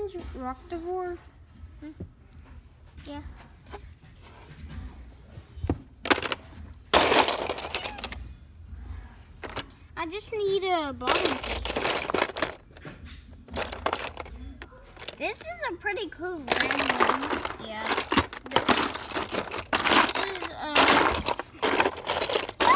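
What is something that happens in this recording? Plastic toys clatter and rattle as they are handled.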